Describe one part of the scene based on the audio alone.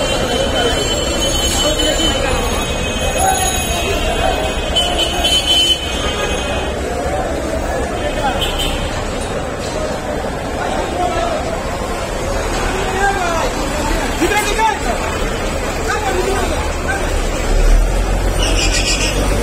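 A crowd of men talks loudly all around.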